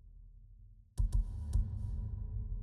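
A game menu gives a short click as the selection moves.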